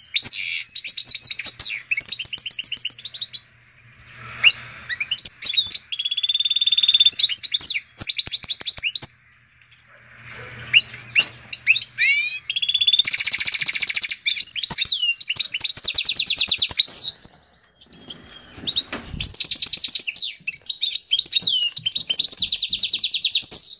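A canary-goldfinch hybrid sings fast trills and twittering phrases.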